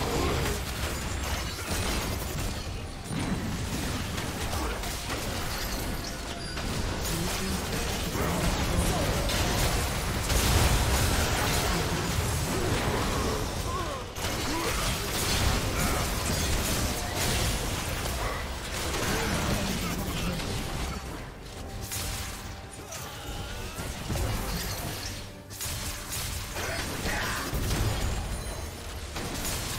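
Magic blasts, clashing weapons and explosions of a video game battle crackle and boom without pause.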